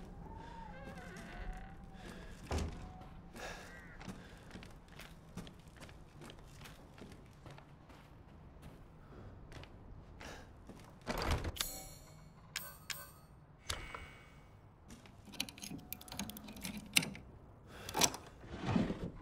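Footsteps thud slowly on wooden floorboards.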